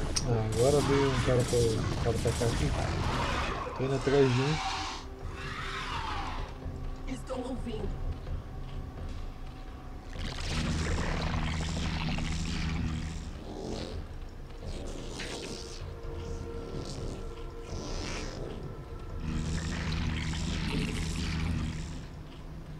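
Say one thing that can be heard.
Game creatures screech and chitter.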